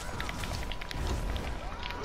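Flames burst and crackle.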